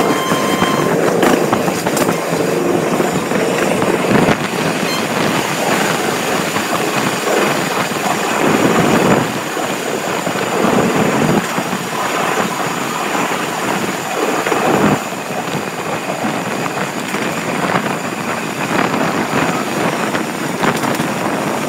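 A train rumbles and clatters steadily along the rails, heard from inside a carriage.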